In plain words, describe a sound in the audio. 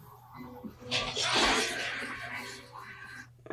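A young woman sighs heavily.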